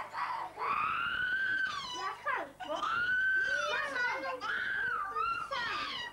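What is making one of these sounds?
A toddler cries loudly.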